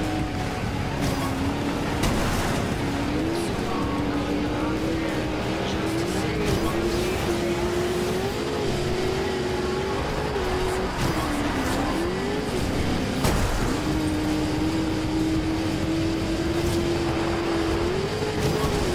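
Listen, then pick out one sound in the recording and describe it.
Tyres rumble and crunch over rough ground.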